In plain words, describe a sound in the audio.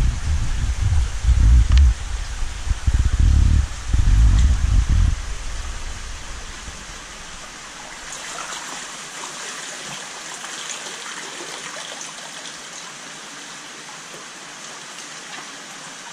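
Water trickles steadily into a pond.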